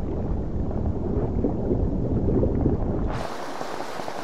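Water swirls in a low, muffled underwater rumble.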